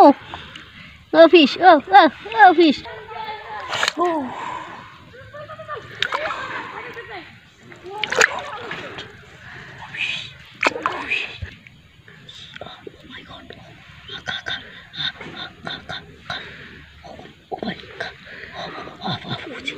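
Water splashes and sloshes as hands grope in a shallow pool.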